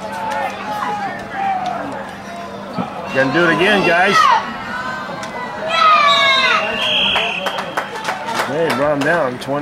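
A crowd of spectators cheers and shouts from the stands outdoors.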